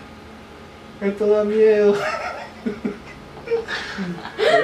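A man laughs cheerfully close by.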